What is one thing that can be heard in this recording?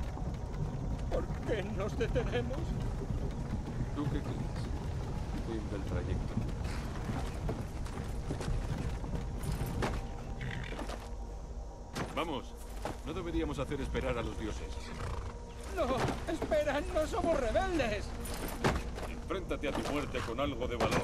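A wooden cart rumbles and creaks along a rough road.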